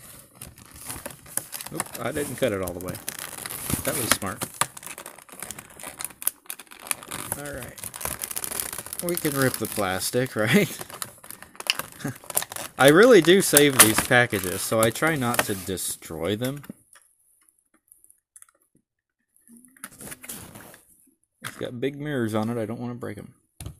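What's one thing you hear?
Plastic packaging crinkles and crackles close by.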